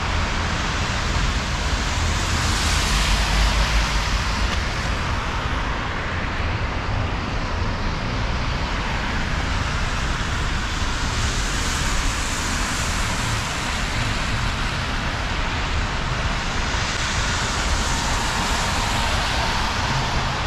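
Traffic hums steadily in a city street outdoors.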